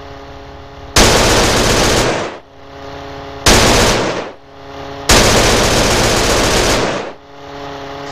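Loud rushing blasts of flame burst out several times.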